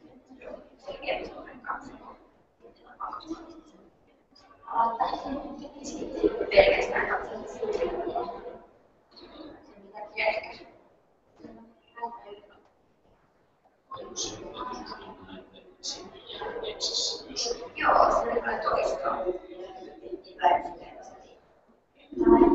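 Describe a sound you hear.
Several men talk together at a distance in a large echoing hall.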